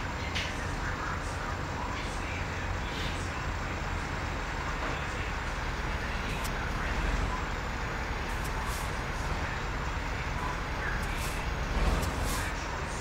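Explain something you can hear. A truck's diesel engine rumbles low and steadily.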